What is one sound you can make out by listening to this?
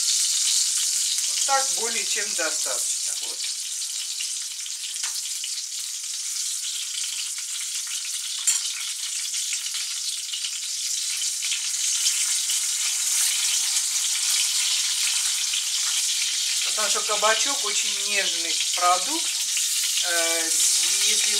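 Slices of vegetable sizzle steadily as they fry in hot oil.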